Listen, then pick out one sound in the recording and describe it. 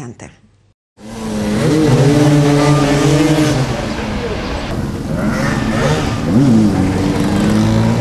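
Motorcycle engines roar and rev loudly.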